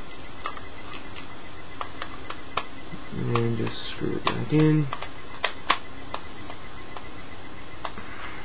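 Small plastic clicks and taps come from a handheld controller being handled close by.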